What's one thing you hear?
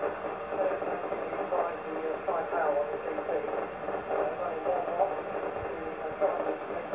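A man talks over a radio loudspeaker, thin and slightly crackly.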